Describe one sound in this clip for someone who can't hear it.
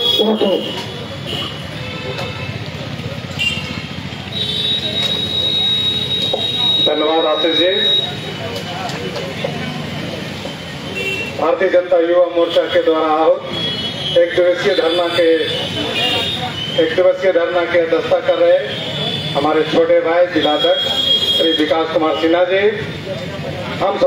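A man speaks forcefully into a microphone, heard through a loudspeaker outdoors.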